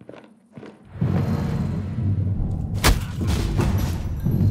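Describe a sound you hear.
A gun fires in a loud burst.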